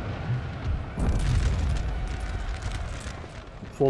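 Musket volleys crackle across a battlefield.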